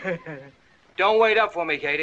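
A man sings out cheerfully.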